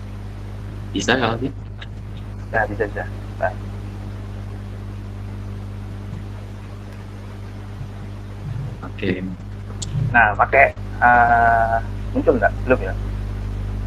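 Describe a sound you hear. A young man speaks calmly over an online call, in short bursts.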